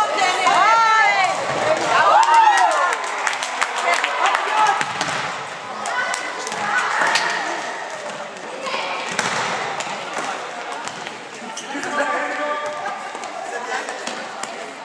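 A ball is kicked and thuds, echoing in a large hall.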